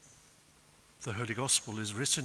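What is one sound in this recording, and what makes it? An elderly man speaks loudly and clearly into a microphone in a large echoing hall.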